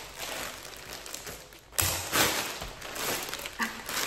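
Scissors snip through a plastic mailer.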